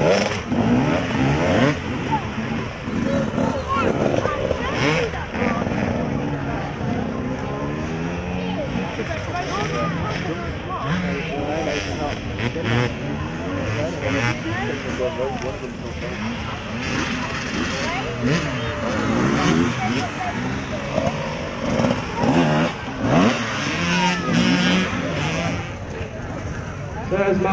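Motorcycle engines rev and roar close by.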